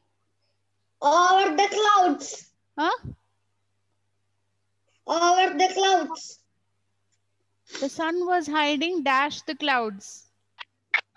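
A young boy speaks with animation, heard close through an online call.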